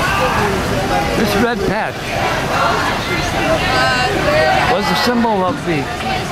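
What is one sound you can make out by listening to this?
A crowd of men and women chatters all around, close by, outdoors.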